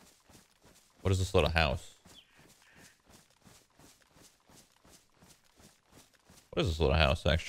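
A young man speaks loudly and with animation into a close microphone.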